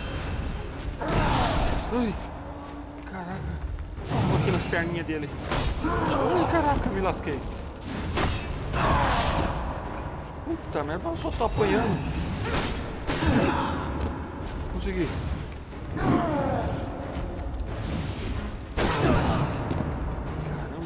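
Heavy blows land with loud, crashing impacts.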